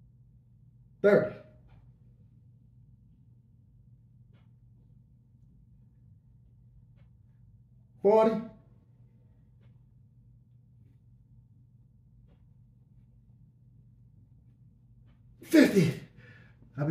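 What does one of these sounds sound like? A man grunts loudly with effort, close by.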